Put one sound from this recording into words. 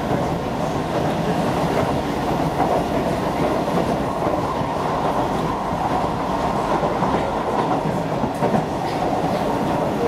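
A train rumbles steadily along the tracks, heard from inside the carriage.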